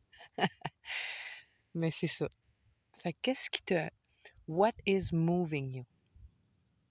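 A woman speaks close up with animation.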